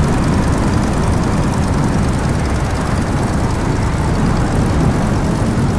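A propeller plane's engine roars steadily close by.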